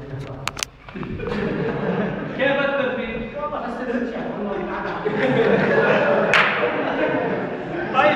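A crowd of men laughs and chatters.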